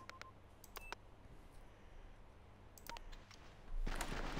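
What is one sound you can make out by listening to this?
Short interface clicks sound a few times.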